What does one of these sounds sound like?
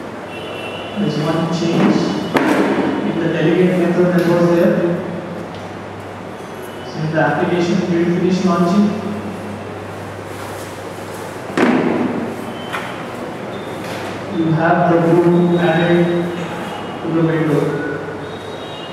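A young man speaks calmly, with pauses, in a slightly echoing room.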